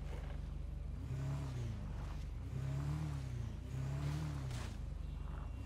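A motorbike engine starts and revs in short bursts.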